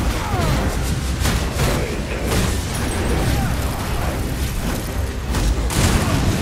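Heavy weapon blows strike a creature with sharp impacts.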